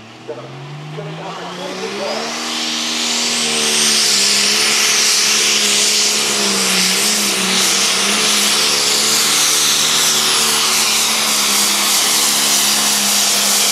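A turbo whistles high over the engine.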